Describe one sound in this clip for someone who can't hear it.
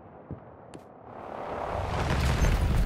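A rushing whoosh swells up.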